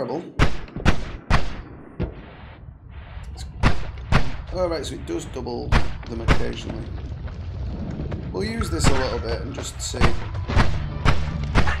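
Game magic bolts fire with sharp zaps.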